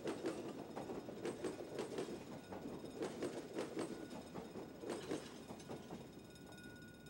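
Train wheels clatter rhythmically over rail joints as a train passes close by.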